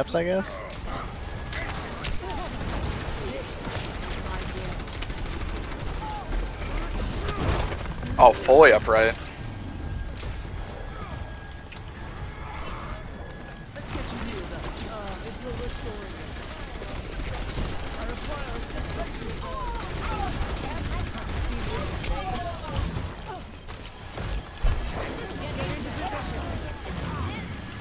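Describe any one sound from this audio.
Game gunfire and energy blasts crackle and pop throughout.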